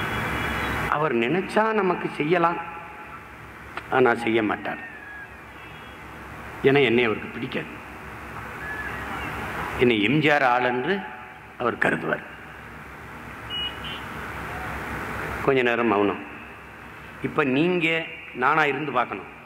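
A man speaks forcefully in bursts through a loudspeaker, with pauses between phrases.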